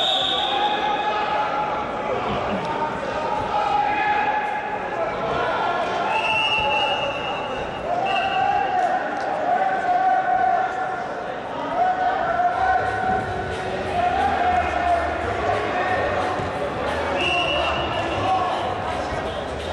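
Spectators shout and call out in an echoing hall.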